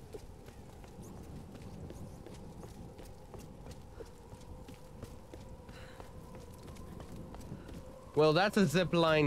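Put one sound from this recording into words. Footsteps crunch steadily over stone and gravel.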